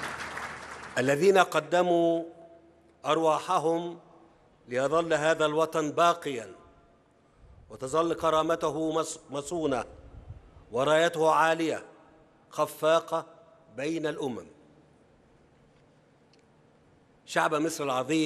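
A man speaks slowly and formally through a microphone in a large echoing space.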